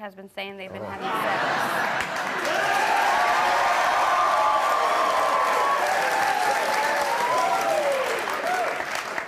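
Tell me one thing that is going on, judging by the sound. A studio audience applauds loudly.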